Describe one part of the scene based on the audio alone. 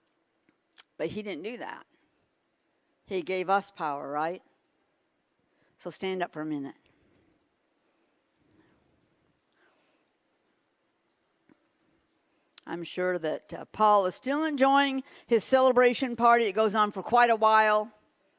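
A middle-aged woman speaks expressively into a microphone, with pauses, in a large echoing hall.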